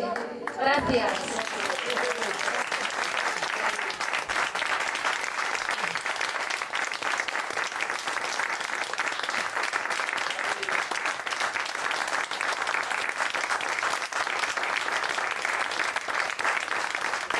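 A crowd applauds steadily outdoors.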